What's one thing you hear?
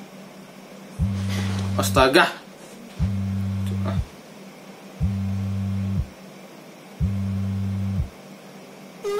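A mobile phone rings in repeated bursts.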